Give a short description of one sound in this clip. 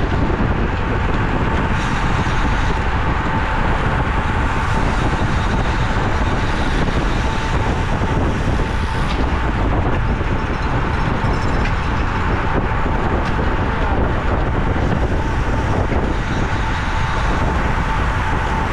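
Strong wind roars steadily across a moving microphone.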